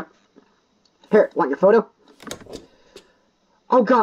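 A stamp tray slides open with a mechanical clunk.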